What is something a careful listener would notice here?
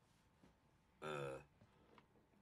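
A young man gives a short exclamation close to a microphone.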